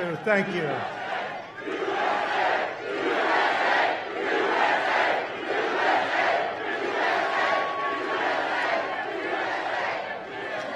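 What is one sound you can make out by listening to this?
A large crowd cheers and chants rhythmically.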